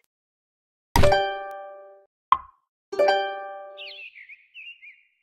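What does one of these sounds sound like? Short ringing tones sound as pieces are placed.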